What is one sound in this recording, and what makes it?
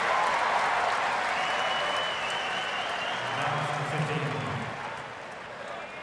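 A large crowd cheers and applauds, then dies down.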